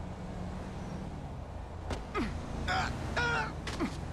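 A body hits the pavement with a heavy thud.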